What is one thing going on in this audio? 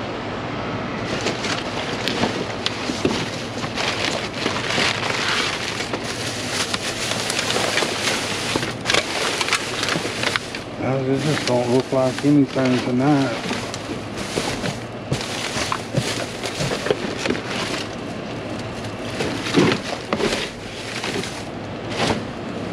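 Cardboard and plastic bags rustle and crinkle.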